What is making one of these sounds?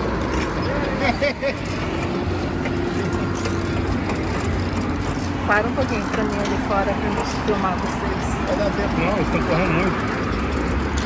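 A middle-aged man talks casually close by.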